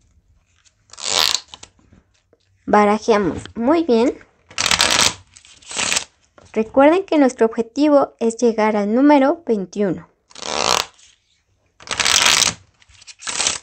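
Playing cards riffle and flutter quickly as they are shuffled.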